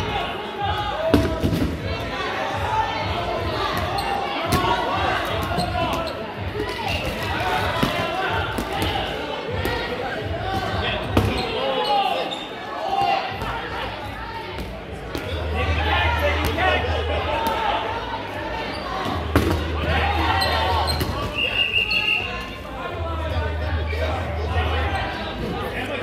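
A crowd of young men and women chatter and call out in a large echoing hall.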